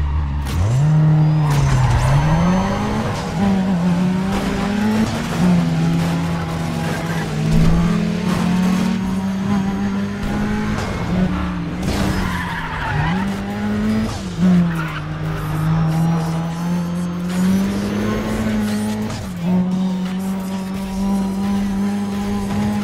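A car engine roars loudly, revving up and down through gear changes.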